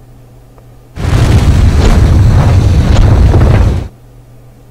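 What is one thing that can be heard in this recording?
A volcano erupts with a deep, rumbling roar.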